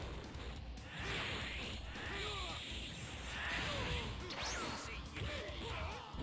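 Punches and kicks thud in a fast fight.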